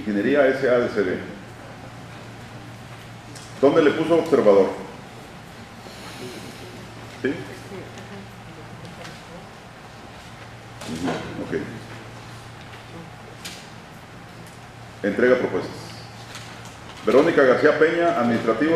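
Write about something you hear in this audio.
A man speaks nearby in short bursts, in an echoing room.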